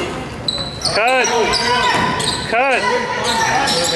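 Basketball shoes squeak on a hardwood court.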